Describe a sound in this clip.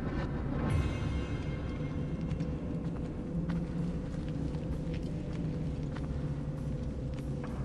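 Footsteps tap on a stone floor in a large echoing hall.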